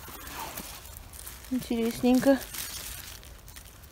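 Dry pine needles and leaves rustle as a hand digs and pulls a mushroom from the ground.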